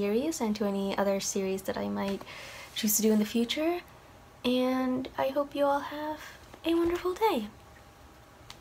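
A young woman speaks calmly into a nearby microphone.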